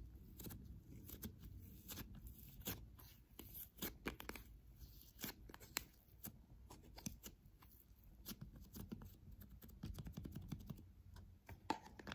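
Soft squishy dough is squeezed and pressed by hands close up, with sticky crackles and pops.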